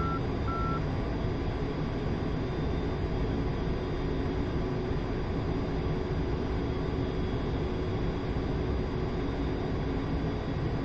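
Rushing air hisses against a cockpit canopy.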